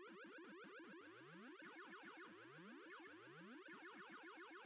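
A short rising electronic blip sounds several times.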